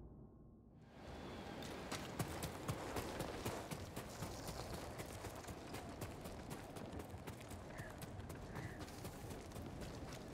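Footsteps thud quickly on the ground as someone runs.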